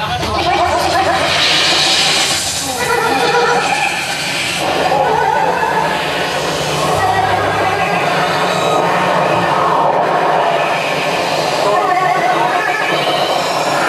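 Electric guitars play loud and distorted.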